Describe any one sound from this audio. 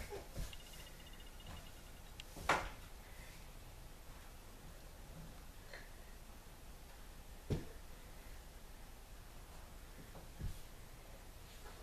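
A toddler's footsteps patter on a wooden floor.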